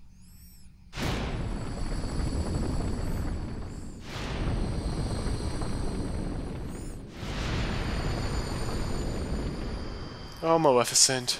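A burst of green flames roars.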